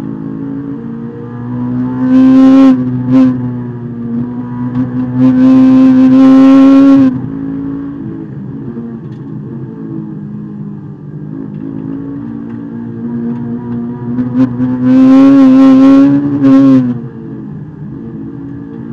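A car engine roars loudly from inside the cabin, revving high on the straights and dropping as the car slows for corners.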